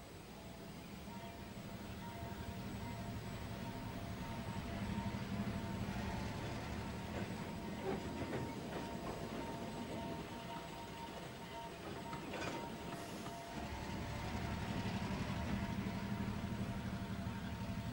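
A small steam engine chugs along a track.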